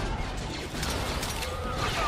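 An explosion booms.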